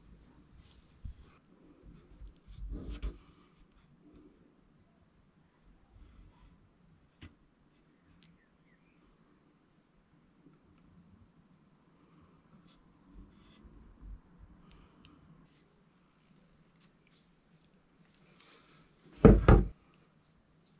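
A metal pick head knocks and scrapes against a surface close by.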